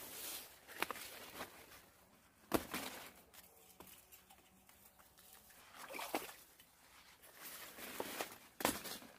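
Leaves rustle close by.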